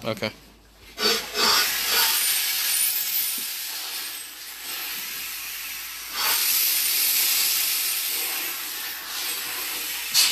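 A drain cleaning machine whirs and rattles loudly.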